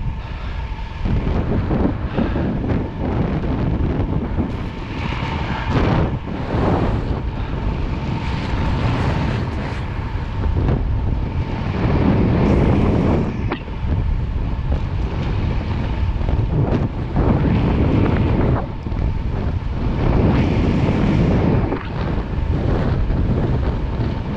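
Wind rushes loudly past a fast-moving bicycle.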